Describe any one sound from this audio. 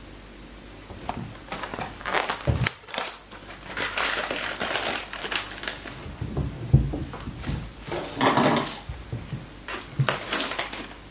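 Objects are set down on a table with soft knocks and rustles.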